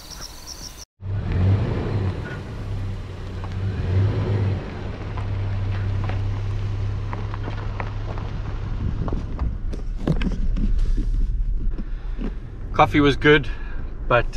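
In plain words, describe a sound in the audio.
A vehicle engine rumbles steadily close by.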